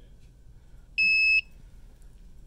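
A thermometer gives a single short beep.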